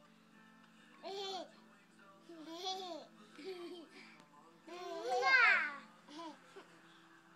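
A small child babbles and squeals excitedly up close.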